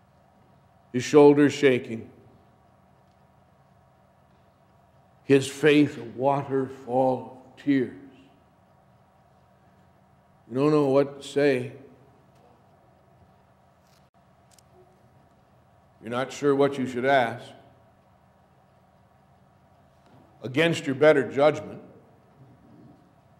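A middle-aged man speaks calmly into a microphone in short phrases with pauses, in a room with a slight echo.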